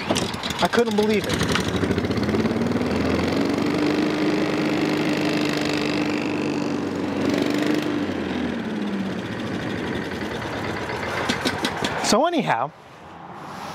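A small petrol engine starts, revs, and runs with a steady drone.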